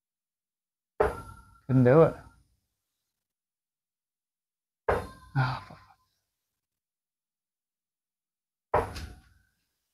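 Darts thud into a bristle dartboard.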